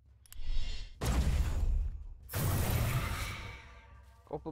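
Magic spells burst and whoosh in quick blasts.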